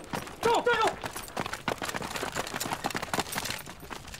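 Rifles clatter as they are raised.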